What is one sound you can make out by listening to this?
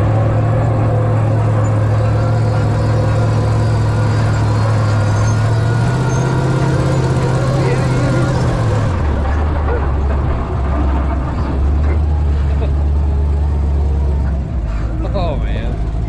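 A bearded man talks cheerfully and laughs close to the microphone.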